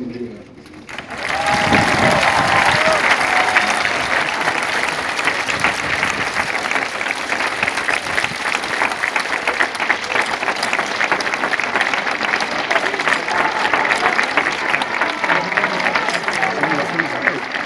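A large crowd applauds and cheers loudly outdoors.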